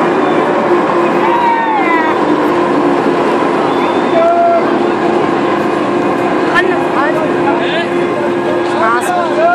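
A fairground ride whirs and rattles steadily as it spins fast.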